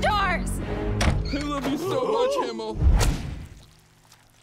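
A cartoon man shouts with excitement close by.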